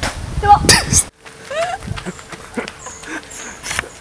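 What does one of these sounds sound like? A young woman laughs nearby.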